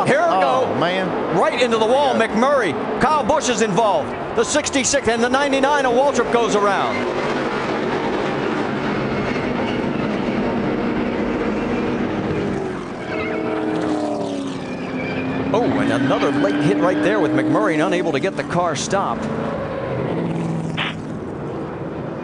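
Race car engines roar loudly as cars speed past.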